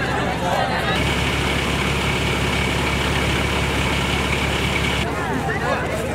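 A fire engine idles with a steady rumble and whine.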